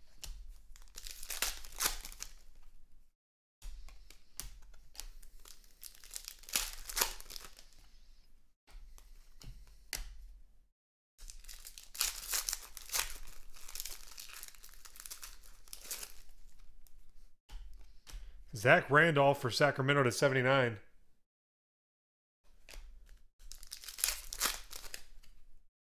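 Foil wrappers crinkle and tear as card packs are ripped open.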